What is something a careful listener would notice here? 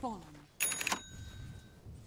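Game sound effects ring out in a short, bright burst.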